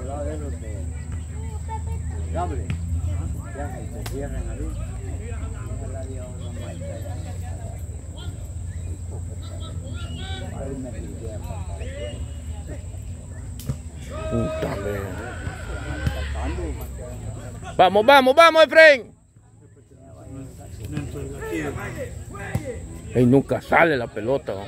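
Men shout to each other in the distance outdoors.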